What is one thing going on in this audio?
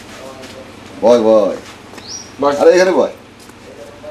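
A man speaks loudly and with animation nearby.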